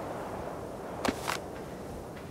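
A short pickup sound clicks once.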